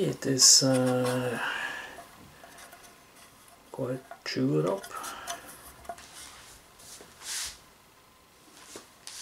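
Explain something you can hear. Tin cans clink and rattle in hands.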